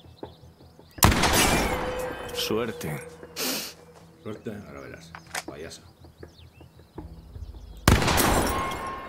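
A gun fires with a loud bang.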